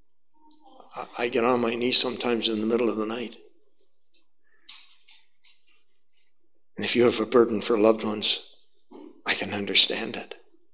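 An elderly man speaks forcefully into a microphone in a room with some echo, in bursts with pauses.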